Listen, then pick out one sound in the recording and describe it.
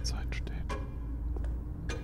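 A pendulum clock ticks steadily.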